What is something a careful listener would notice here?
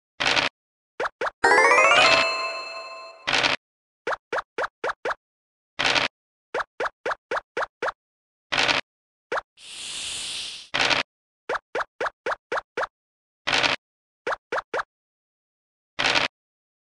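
Short clicks tap quickly as game pieces hop across the board.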